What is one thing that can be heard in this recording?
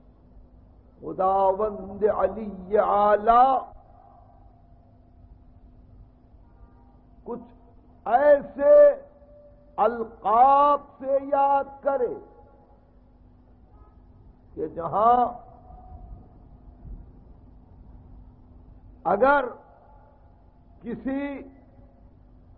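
An elderly man recites in a slow, melodic voice, in short phrases with pauses between them.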